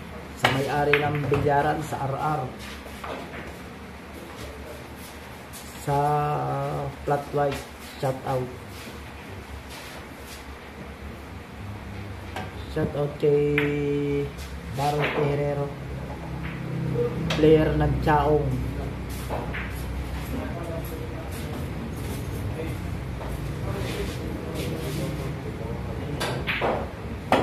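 Pool balls clack together and roll.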